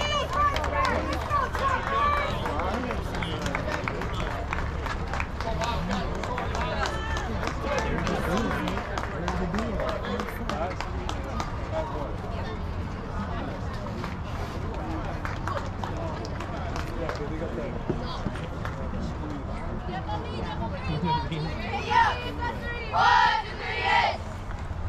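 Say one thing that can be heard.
Young players chatter and call out on an open field outdoors.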